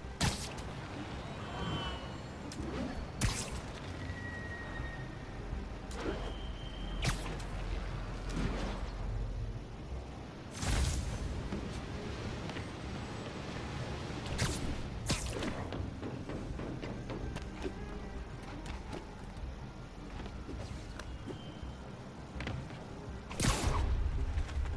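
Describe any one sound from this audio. Web lines shoot out with sharp thwipping snaps.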